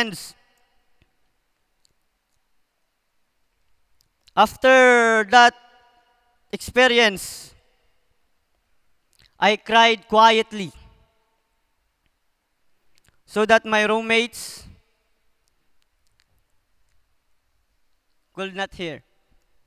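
A young man speaks into a microphone over a loudspeaker in an echoing hall, in short phrases with long pauses.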